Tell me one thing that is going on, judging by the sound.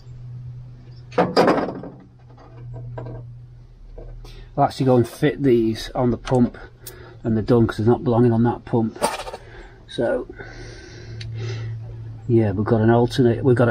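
Metal engine parts click and rattle as they are handled.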